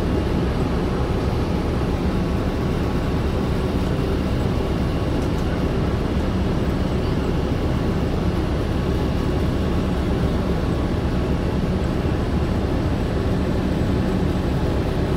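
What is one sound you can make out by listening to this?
A vehicle rumbles steadily, heard from inside as it rolls along a street.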